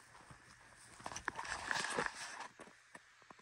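Stiff clothing rustles close by.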